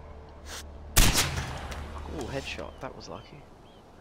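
A rifle fires a single loud shot that echoes and rumbles away.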